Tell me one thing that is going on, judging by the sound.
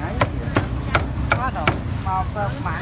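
A cleaver chops hard through meat on a wooden board.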